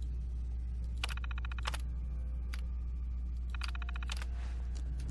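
A computer terminal beeps as menu options are selected.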